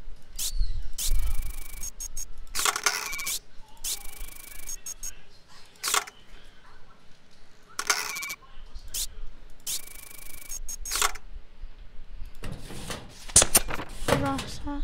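Papers slide and rustle in quick bursts.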